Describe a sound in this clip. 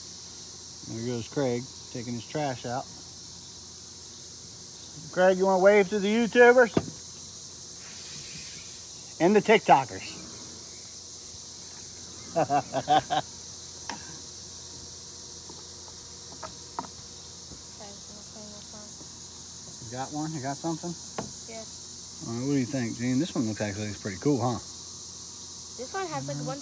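A man talks and laughs close by.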